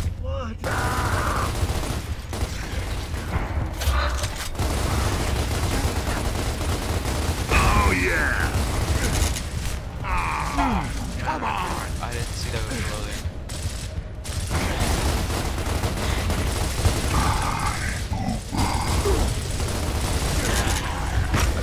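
Rapid gunfire rattles and booms throughout.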